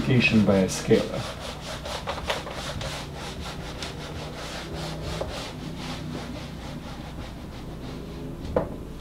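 An eraser rubs and squeaks against a whiteboard.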